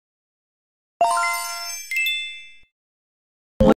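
A bright, sparkling chime jingles and slowly fades.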